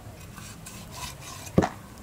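A cleaver chops through a fish on a wooden block.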